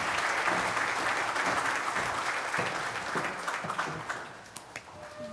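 An audience applauds in a large hall, fading away.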